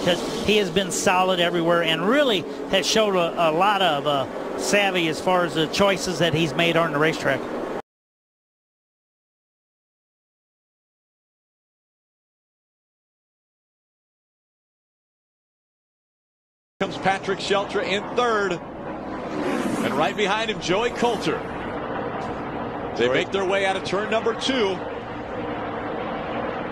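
Race car engines roar past on a track.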